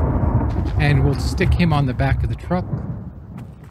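An elderly man talks calmly and close to a microphone.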